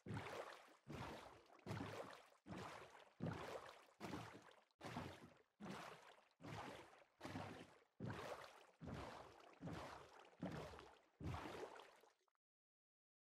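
Oars splash rhythmically through water.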